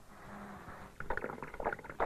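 A thick sauce bubbles and plops in a pot.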